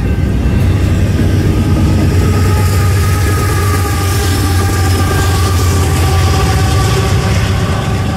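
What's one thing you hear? Diesel locomotive engines rumble loudly as they pass.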